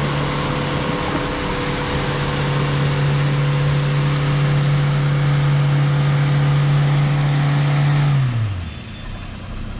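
An engine revs hard and then winds down.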